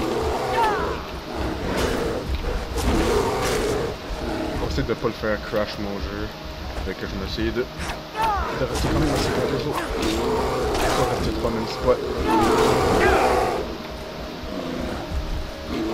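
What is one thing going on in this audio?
A heavy mace thuds into a bear.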